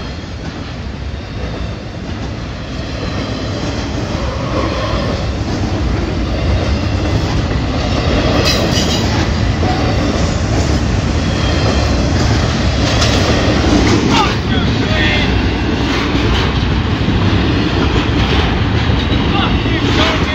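Steel wheels clatter and squeal on the rails.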